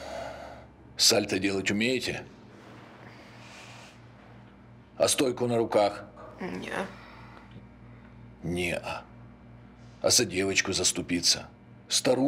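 A middle-aged man speaks slowly and menacingly, in short bursts with pauses.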